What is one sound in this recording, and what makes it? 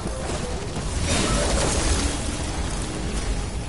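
An explosion bursts with a loud crackling roar.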